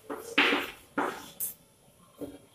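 Chalk scratches and taps on a board.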